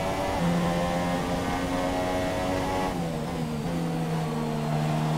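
A racing car engine screams at high revs, then drops lower as the car slows.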